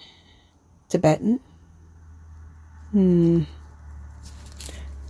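Beads click softly against each other as they are handled.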